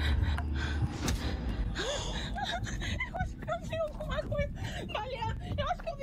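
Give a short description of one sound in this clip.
A young woman gasps in surprise.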